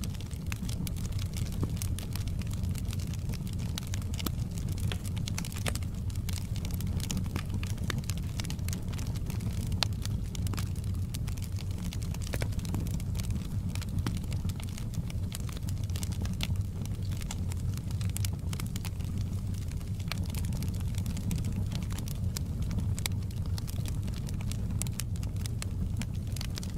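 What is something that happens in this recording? A wood fire crackles and pops throughout.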